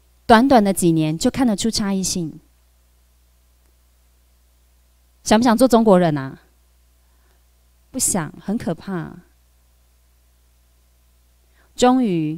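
A young woman speaks calmly into a microphone, heard over a loudspeaker, with pauses between phrases.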